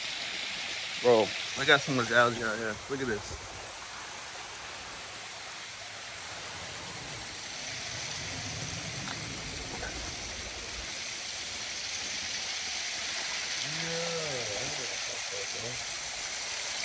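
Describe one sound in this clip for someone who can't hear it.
A man talks close to a microphone, calmly, outdoors.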